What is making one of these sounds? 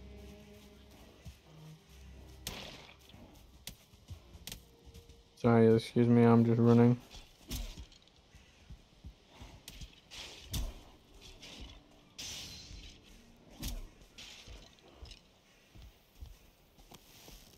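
Footsteps rustle through grass and thud on stone.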